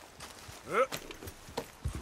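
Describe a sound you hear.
Hooves thud on a dirt path.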